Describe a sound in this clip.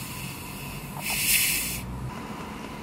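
Carbonated soda hisses as a plastic bottle cap is twisted open.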